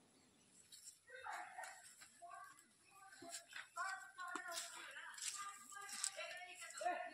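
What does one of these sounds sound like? Playing cards slap down onto a cloth on the ground.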